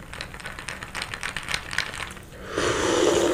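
A young man chews food close to a microphone.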